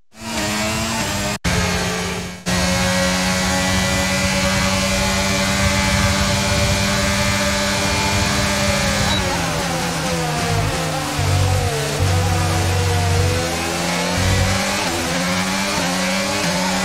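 A racing car engine screams at high revs, dropping in pitch as the car slows for a corner and then rising again.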